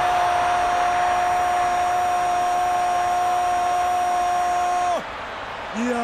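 A large crowd cheers loudly in a stadium.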